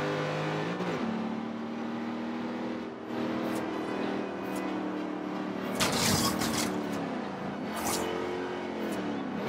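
A car engine roars steadily, its pitch shifting as gears change.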